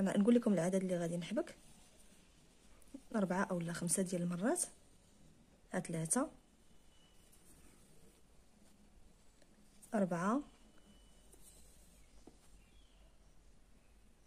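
Thread softly rustles as it is pulled through cloth.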